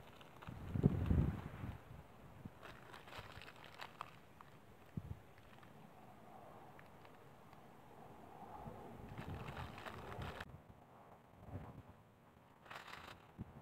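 A plastic wrapper crinkles close by.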